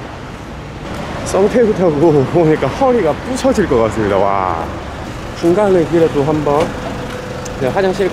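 A young man speaks calmly close to the microphone.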